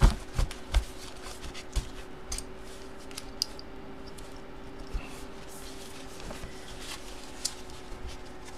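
Cardboard boxes shuffle and tap against each other.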